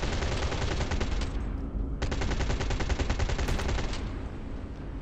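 Rapid laser gunfire crackles and buzzes.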